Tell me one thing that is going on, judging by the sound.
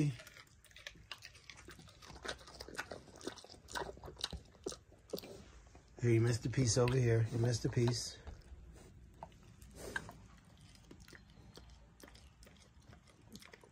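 A pig snuffles and smacks its lips softly, close by.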